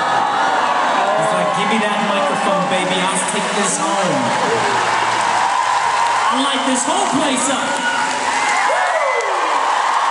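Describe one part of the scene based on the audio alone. A man speaks into a microphone over loudspeakers in a large echoing arena.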